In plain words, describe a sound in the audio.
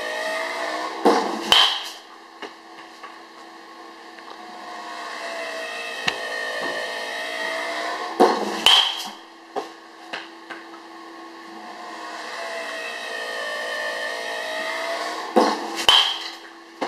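A bat cracks sharply against a ball, again and again.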